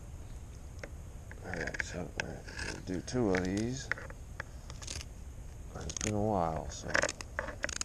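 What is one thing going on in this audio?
Scissors snip and crunch through a fish's fins.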